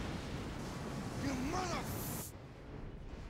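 A man growls angrily.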